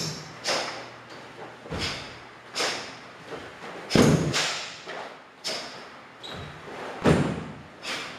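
A karate uniform snaps sharply with each quick strike, echoing in a large room.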